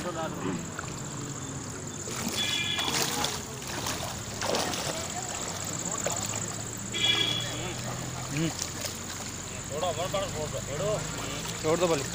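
Men talk loudly nearby.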